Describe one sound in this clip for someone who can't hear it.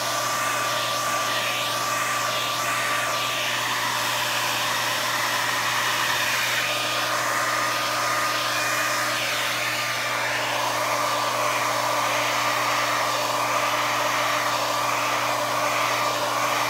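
A heat gun blows with a steady, loud whirring hiss.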